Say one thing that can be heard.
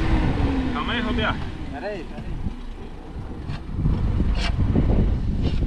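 A man digs in sand by hand, scraping and thumping.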